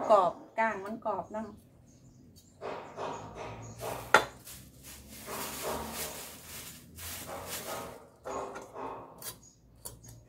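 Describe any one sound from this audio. A knife cuts fish on a wooden cutting board.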